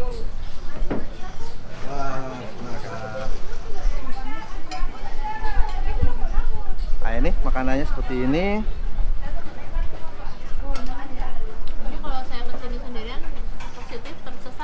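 Several people chat in the background.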